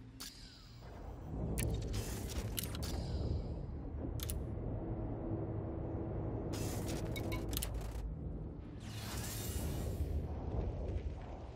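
A deep spacecraft engine hum rumbles steadily.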